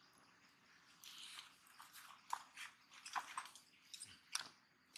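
Small monkeys shuffle and rustle over dry leaves close by.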